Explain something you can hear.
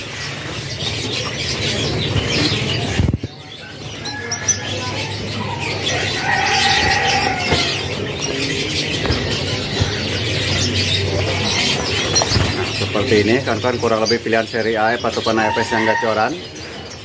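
Many canaries chirp and twitter busily.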